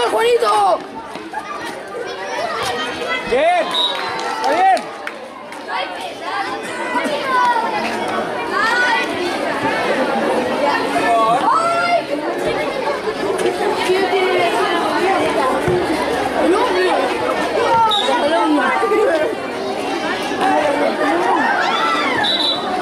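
A crowd of children shouts and cheers outdoors.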